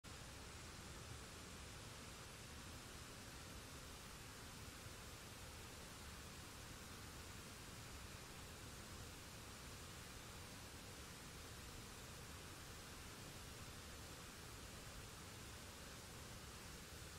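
A waterfall rushes and splashes steadily.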